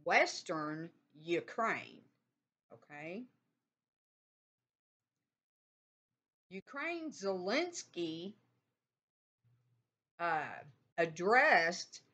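An older woman speaks calmly and close up, heard through a computer microphone, with pauses.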